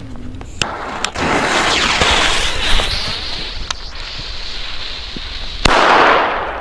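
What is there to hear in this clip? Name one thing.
A firework fuse fizzes and hisses close by.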